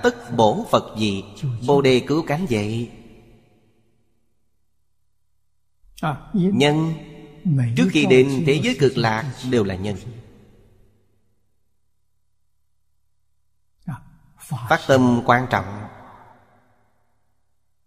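An elderly man speaks calmly into a close microphone, pausing between phrases.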